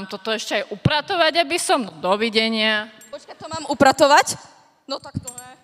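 A young woman speaks dramatically into a microphone over loudspeakers.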